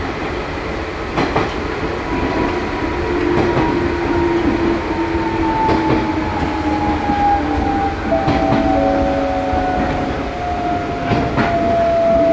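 An electric motor whines with a slowly falling pitch.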